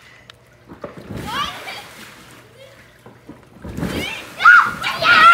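Water splashes as a girl falls into a pool.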